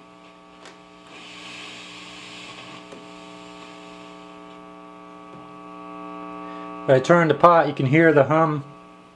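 Hiss from an amplifier swells as a knob is turned.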